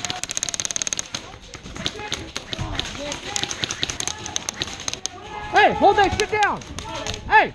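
An airsoft gun fires rapid bursts of sharp clicks close by.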